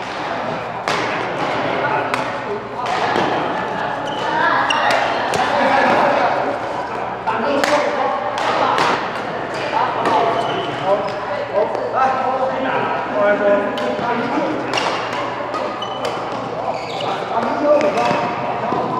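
Shuttlecocks are struck sharply by rackets, echoing in a large hall.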